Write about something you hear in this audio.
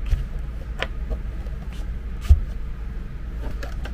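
A cable plug clicks into a socket.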